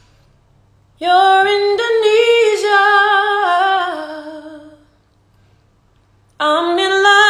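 A young woman sings a sustained melody close to a phone microphone.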